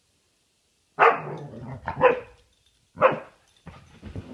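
A dog barks sharply close by.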